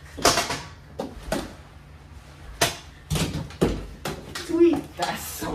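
Bodies and feet thump on a carpeted floor.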